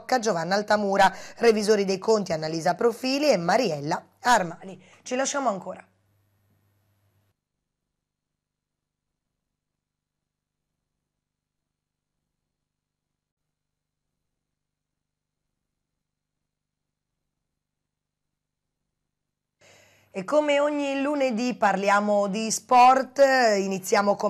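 A woman speaks calmly and clearly into a close microphone, reading out.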